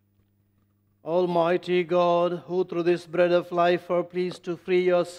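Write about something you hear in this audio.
A middle-aged man speaks slowly and solemnly into a close microphone, in a sing-song chanting voice.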